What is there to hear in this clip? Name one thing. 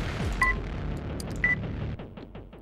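A short electronic beep sounds twice.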